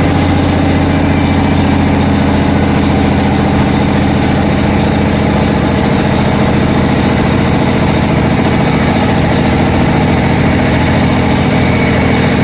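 A train's engine hums steadily from inside a carriage as it rolls slowly.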